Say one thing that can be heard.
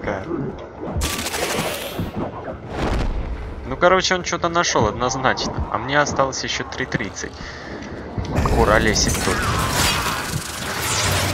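Weapons fire in bursts amid loud game effects.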